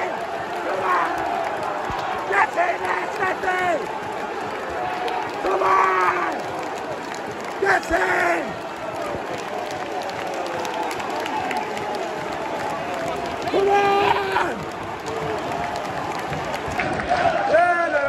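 A large stadium crowd sings and chants loudly outdoors.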